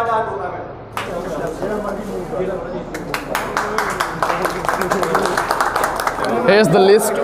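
A group of people claps their hands.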